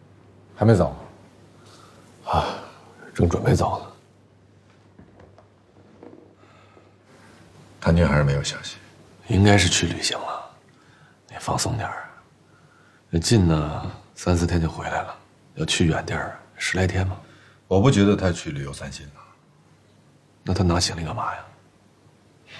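A man speaks calmly and conversationally nearby.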